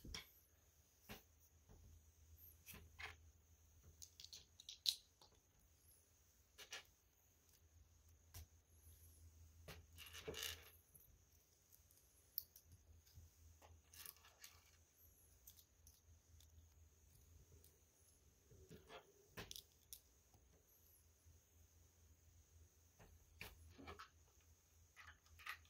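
Small plastic bricks click and snap together.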